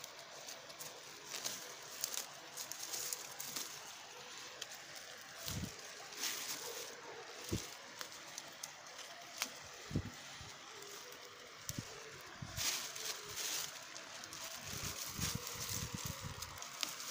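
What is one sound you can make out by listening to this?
Dry grass rustles and crackles as a hand parts the stalks close by.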